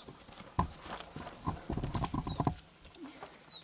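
Cardboard rustles and thumps as small animals push against a box.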